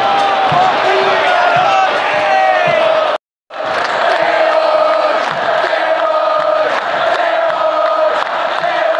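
A large crowd of fans sings and chants loudly.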